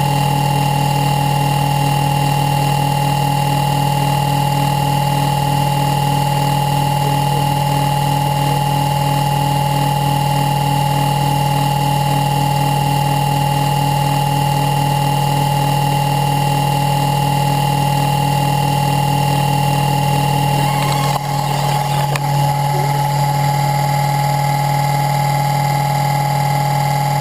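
A small wind turbine whirs steadily with a humming drone.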